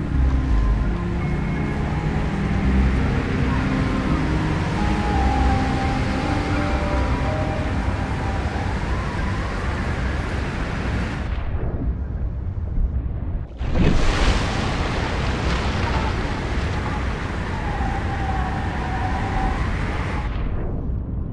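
Waves splash and churn loudly at the water's surface.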